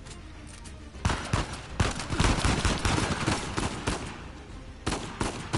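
Pistol shots crack repeatedly in a large echoing hall.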